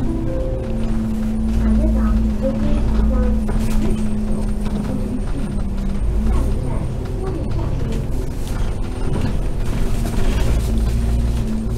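A tram hums and rumbles steadily as it rolls along the tracks.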